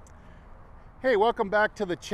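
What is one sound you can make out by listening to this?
A man speaks cheerfully close by.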